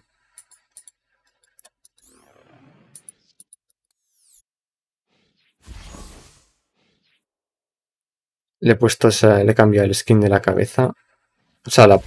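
Soft electronic clicks sound as menu items are picked.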